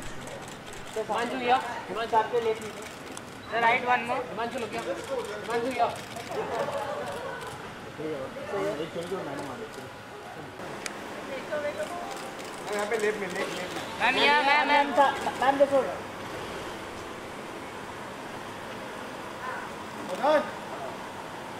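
Several men shout and call out close by, with animation.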